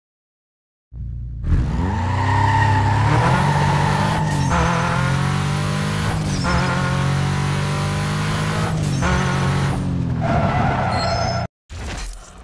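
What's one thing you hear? A car engine roars and revs up as it accelerates.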